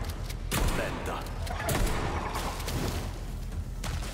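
A spiked club strikes a body with heavy thuds.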